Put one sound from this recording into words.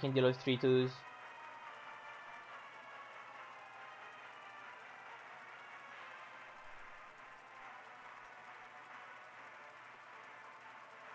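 Soft game music hums steadily.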